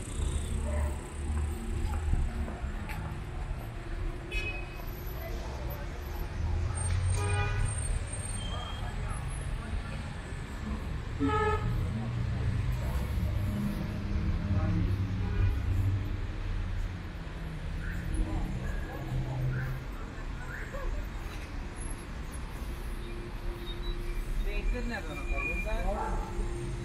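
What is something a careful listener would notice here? Footsteps scuff on a paved sidewalk.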